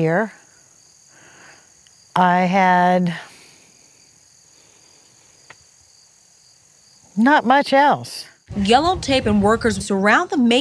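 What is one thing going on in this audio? An older woman speaks calmly nearby.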